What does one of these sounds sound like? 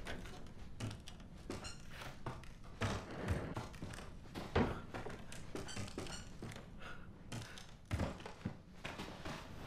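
Footsteps thud slowly on creaking wooden floorboards.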